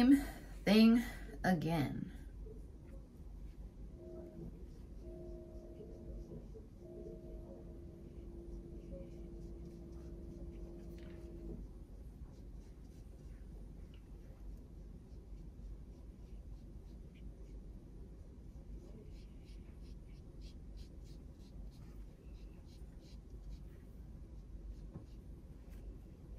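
A brush softly strokes and taps on paper.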